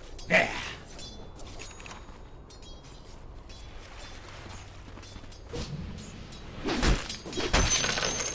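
Game spell effects crackle and burst in a fight.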